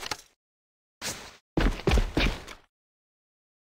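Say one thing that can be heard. A rifle scope clicks as it zooms in.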